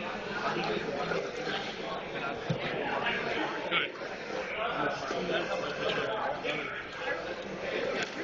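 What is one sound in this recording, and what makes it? Playing cards are laid down on a table.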